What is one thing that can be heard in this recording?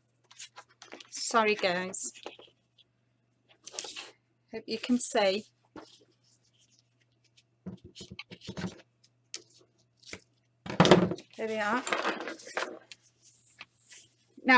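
Paper rustles and slides.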